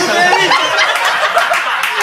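A woman laughs near a microphone.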